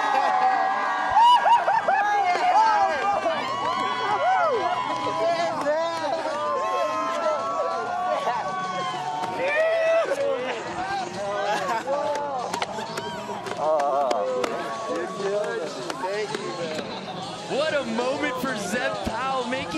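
A young man shouts and laughs excitedly close by.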